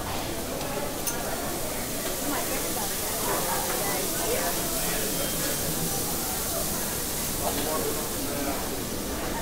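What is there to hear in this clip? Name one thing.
Food sizzles on a hot grill.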